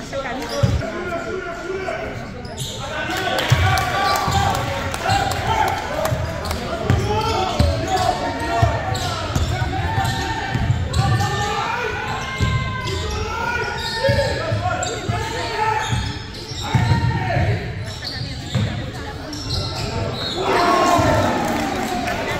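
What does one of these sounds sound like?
Young men shout and call out on the court.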